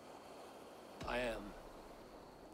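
A man speaks briefly in a low, calm voice.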